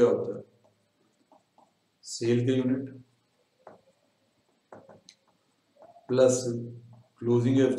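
A young man speaks calmly and slowly close to a microphone, with pauses.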